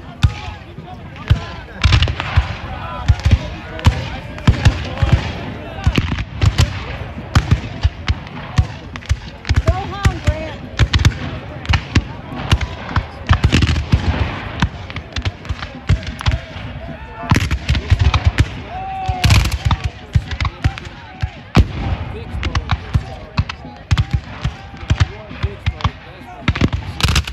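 Cannons boom in the distance.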